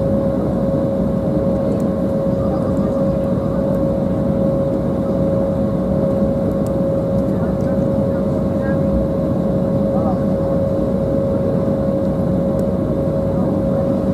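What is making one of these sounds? Aircraft wheels rumble over the runway.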